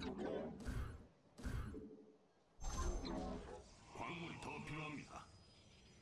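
A video game plays short electronic sound effects.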